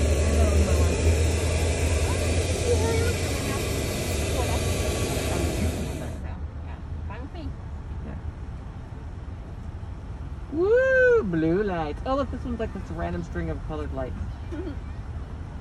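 A car engine hums quietly as the car rolls slowly.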